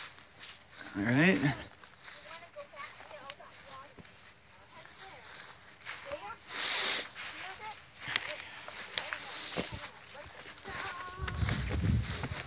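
Children shout and call out nearby outdoors.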